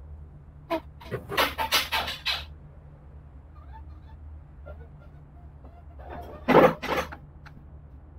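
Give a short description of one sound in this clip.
A hammer swooshes through the air in quick swings.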